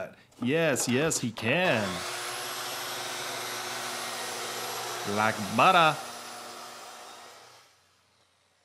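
A circular saw motor whirs, rising and falling in pitch as it revs.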